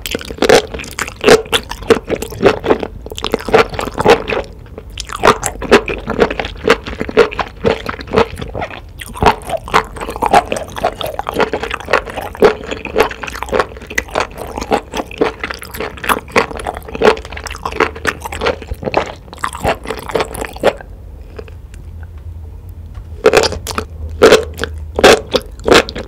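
A woman chews wet food loudly, close to a microphone.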